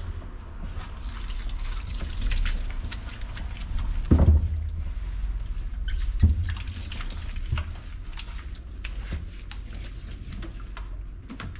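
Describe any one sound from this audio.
A plastic bottle squirts shampoo with soft squelches.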